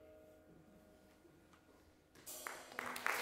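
A jazz band plays softly.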